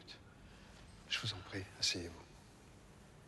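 A woman answers softly.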